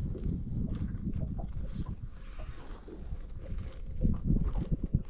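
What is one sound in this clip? Water laps against a boat's hull.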